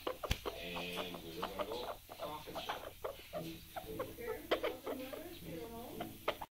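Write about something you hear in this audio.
A parrot chatters and mumbles softly up close.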